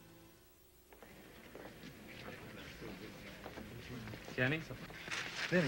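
Several men talk and laugh nearby.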